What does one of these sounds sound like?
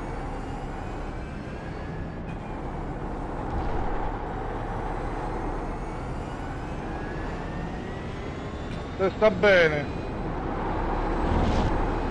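A racing car engine roars steadily, rising and falling as gears change.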